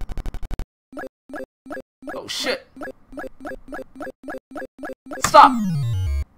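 An arcade game ticks with quick, even beeps.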